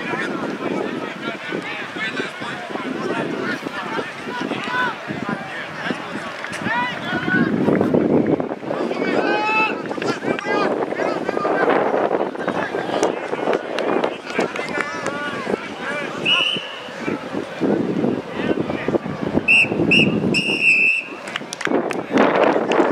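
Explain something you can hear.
A crowd of spectators chatters and calls out across an open field.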